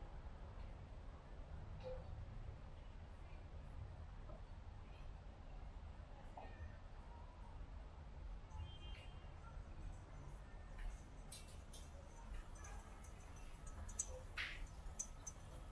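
Wind blows softly outdoors.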